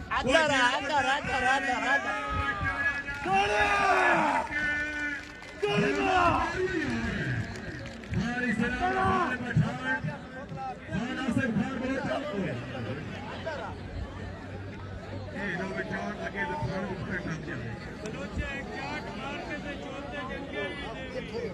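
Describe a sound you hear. A large crowd murmurs and cheers outdoors.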